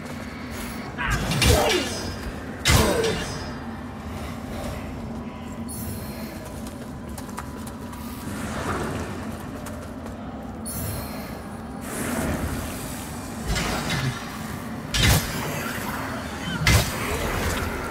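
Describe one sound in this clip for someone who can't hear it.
Heavy weapon blows strike with loud thuds.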